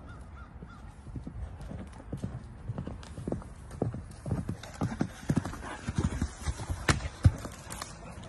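A horse's hooves thud over leafy ground.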